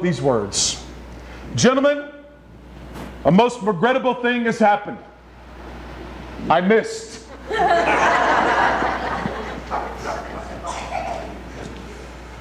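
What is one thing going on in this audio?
A man speaks with animation into a microphone in an echoing hall.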